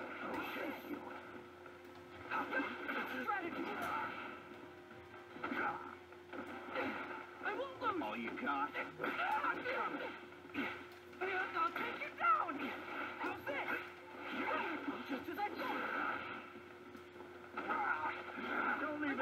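Punches and blasts thud and crash in a video game fight.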